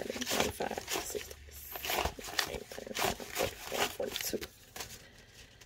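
Paper banknotes rustle and flick as they are counted by hand.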